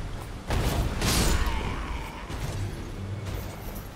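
A fiery blast bursts with a loud whoosh and crackle.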